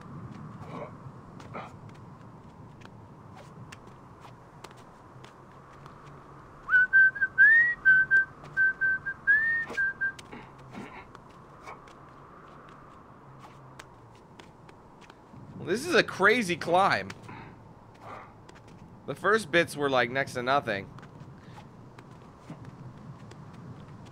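Hands and feet scrape and tap on stone during a steady climb.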